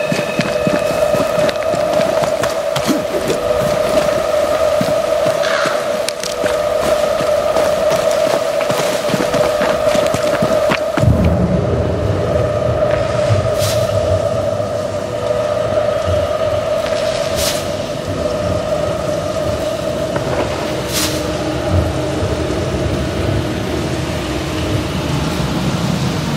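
Footsteps run over grass and rocks.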